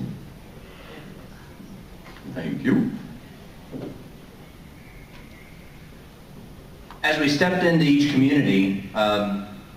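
A young man speaks to an audience from a distance.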